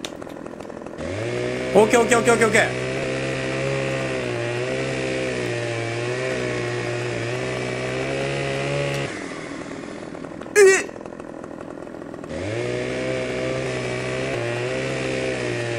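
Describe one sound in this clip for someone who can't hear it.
A chainsaw revs loudly and cuts into wood.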